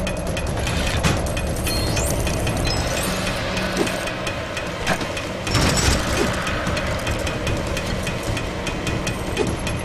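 Coins jingle and clink in quick bursts.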